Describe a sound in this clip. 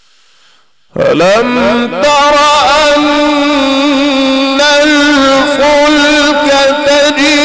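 A man chants melodiously into a microphone in an echoing hall.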